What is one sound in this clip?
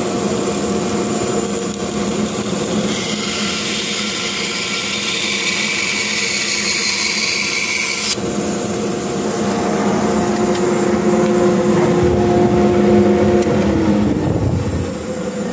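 A band saw hums steadily, then winds down.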